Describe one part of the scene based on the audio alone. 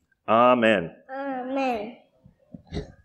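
A young child calls out in a high voice.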